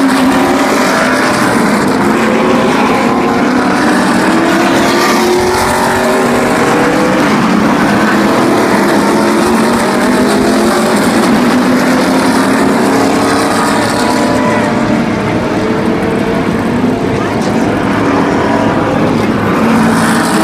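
Race car engines roar loudly as the cars speed past, rising and falling in pitch.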